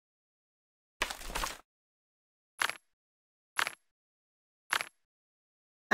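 Menu buttons click.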